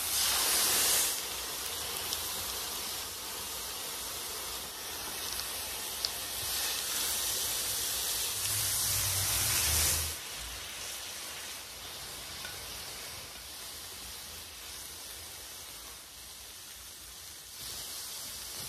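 A metal spatula scrapes across a griddle.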